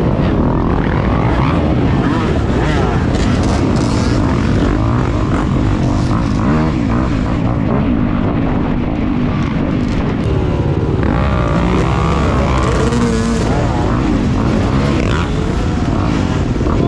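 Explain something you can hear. A four-stroke dirt bike revs up and down.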